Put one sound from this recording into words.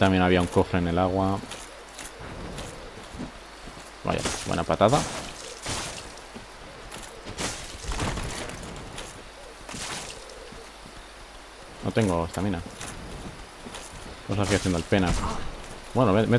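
A sword swishes and strikes in a fight.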